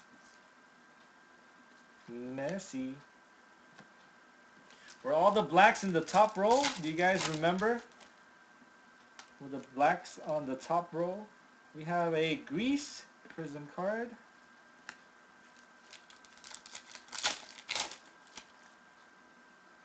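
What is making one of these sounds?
Cards rustle and slap softly as they are handled.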